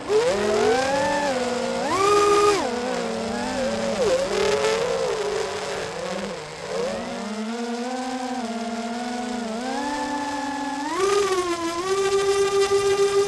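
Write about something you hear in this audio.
A small drone's motors whine steadily and rise and fall in pitch as it speeds up and slows down.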